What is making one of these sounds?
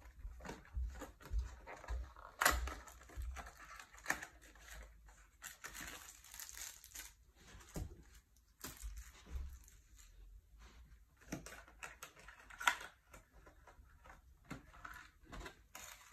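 Hard plastic parts click and knock together.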